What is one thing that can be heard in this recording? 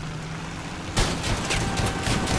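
Debris clatters and crunches as a vehicle is hit.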